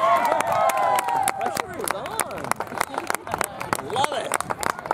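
A group of people claps.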